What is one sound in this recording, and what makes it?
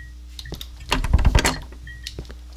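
A door handle rattles against a locked door.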